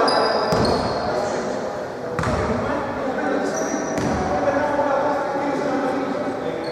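Men call out to each other across a large echoing gym.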